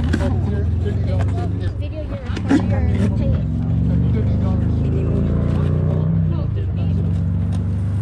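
A man and a woman talk nearby.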